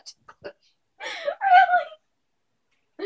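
A young woman laughs nearby.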